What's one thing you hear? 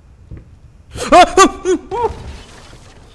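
A young man screams loudly in fright.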